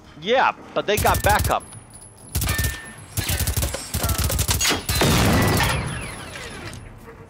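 A submachine gun fires rapid bursts of shots at close range.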